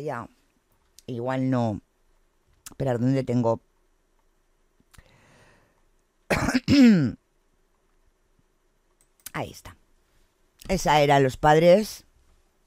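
A woman speaks with animation into a close microphone, in short bursts with pauses.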